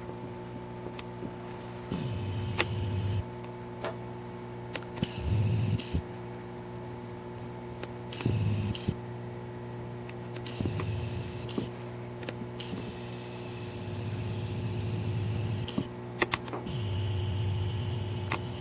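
A pinball machine's relays click now and then.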